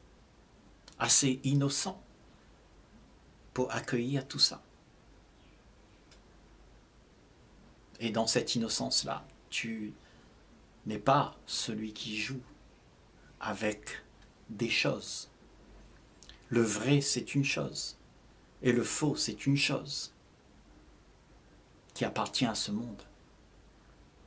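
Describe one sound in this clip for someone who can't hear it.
An elderly man speaks slowly and calmly, close to a microphone, with long pauses.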